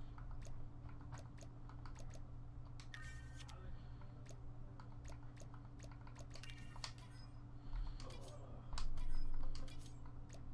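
Short electronic menu clicks and blips sound repeatedly.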